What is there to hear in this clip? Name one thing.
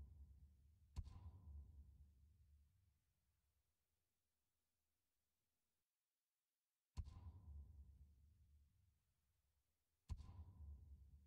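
A game menu makes a sharp click, followed by a deep rumbling swell.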